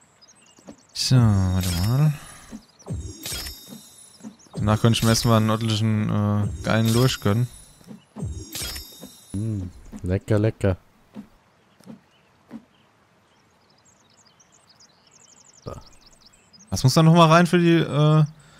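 A man talks with animation, close to a microphone.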